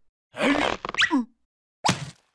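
A small cartoon creature babbles and squeaks in a high, silly voice.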